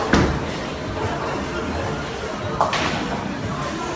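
A bowling ball rolls down a lane.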